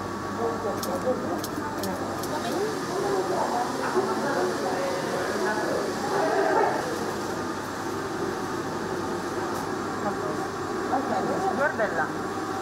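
Men and women talk quietly nearby.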